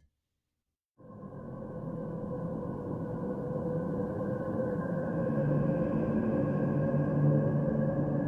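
A low rumbling drone swells and grows louder.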